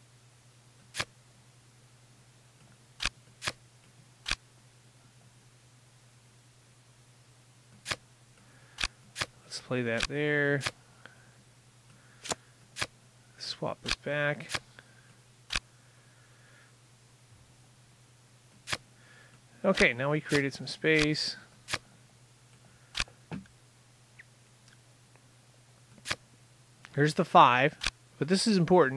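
Playing cards in a computer game click sharply into place, again and again.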